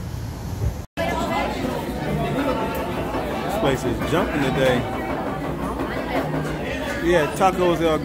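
A crowd of people chatter in a busy room.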